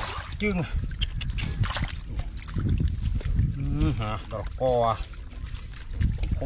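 Hands squelch and splash in shallow muddy water.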